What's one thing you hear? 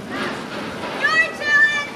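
A young woman shrieks in a high voice.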